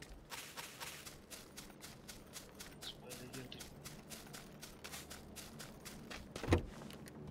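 Footsteps run quickly over dry grass and dirt.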